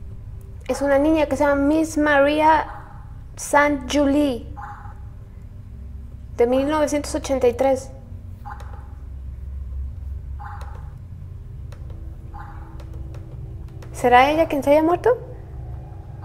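A young woman speaks close to a microphone with animation.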